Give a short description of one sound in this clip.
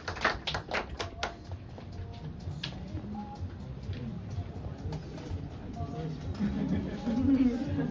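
A crowd chatters quietly.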